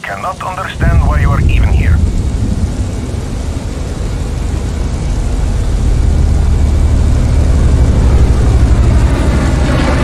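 A car engine rumbles low and steadily.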